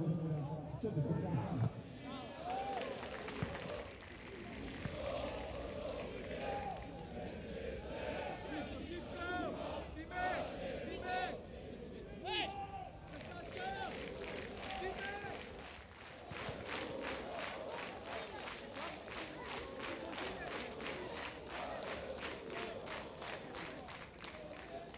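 A crowd of spectators chants and sings loudly in a stadium.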